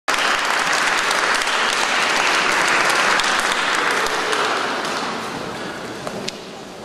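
An audience applauds in a large echoing hall, then the applause fades.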